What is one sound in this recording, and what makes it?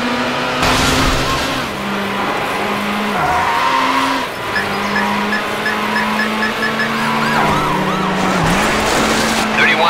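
A racing car engine hums and shifts pitch as it speeds along.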